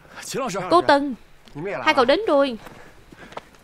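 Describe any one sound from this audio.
Young men laugh and greet each other cheerfully.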